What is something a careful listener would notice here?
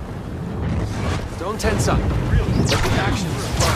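Blaster shots zap and whine in quick bursts.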